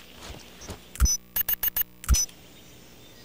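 A game plays short electronic error beeps.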